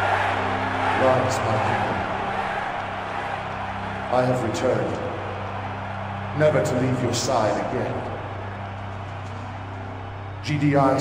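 A man speaks loudly and forcefully, as if giving a speech.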